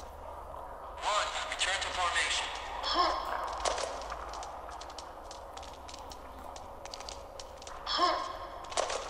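A man speaks with animation into a microphone, close by.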